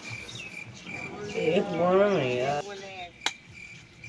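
A teenage boy talks with animation nearby.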